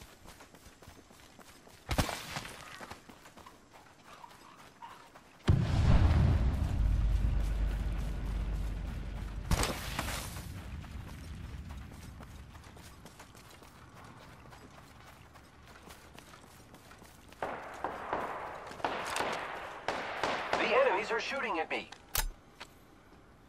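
Quick footsteps thud on dry ground.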